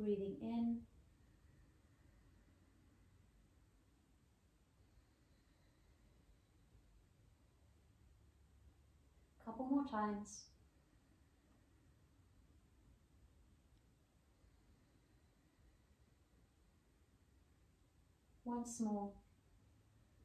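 A woman speaks calmly in short phrases, with long pauses between them.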